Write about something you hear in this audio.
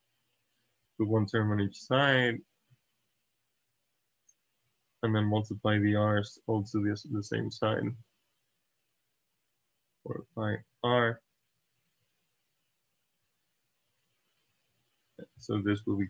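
A young man speaks calmly into a close microphone, explaining in short phrases.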